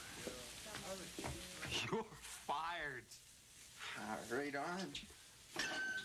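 A middle-aged man speaks.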